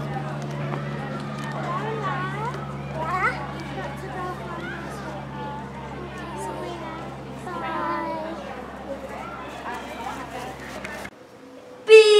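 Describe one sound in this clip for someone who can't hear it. Young girls talk and call out outdoors.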